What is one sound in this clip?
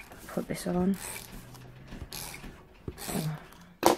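A glue applicator rubs and scratches across paper.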